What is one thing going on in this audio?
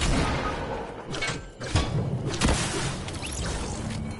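A pickaxe strikes a brick wall with loud thuds.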